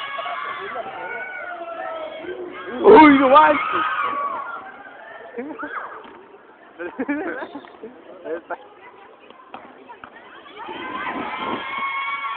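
Young people shout and chatter outdoors.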